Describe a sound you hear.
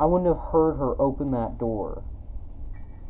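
A young woman speaks close to a microphone.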